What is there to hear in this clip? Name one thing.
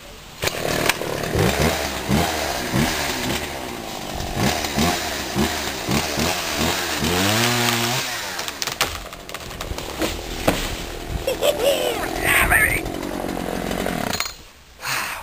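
A chainsaw roars and revs up and down.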